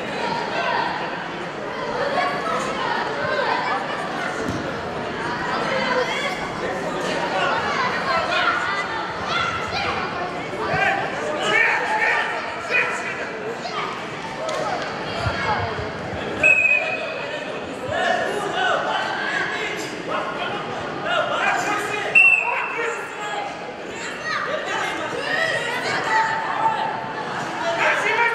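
Wrestlers thud and scuffle on a mat.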